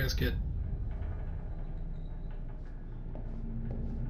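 A small wooden frame taps down on a hard surface.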